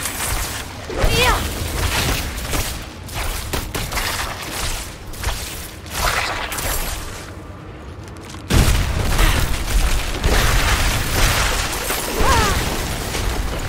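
Creatures shriek and screech as they are struck.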